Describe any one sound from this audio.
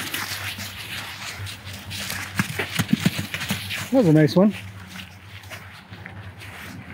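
Hooves thud on soft sand as horses move about.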